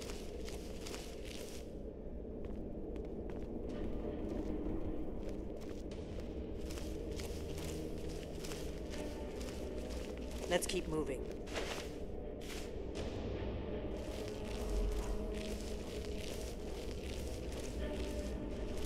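Footsteps tread slowly on stone.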